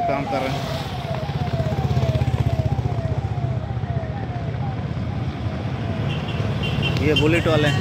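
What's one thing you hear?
Motorcycle engines rumble as they ride past.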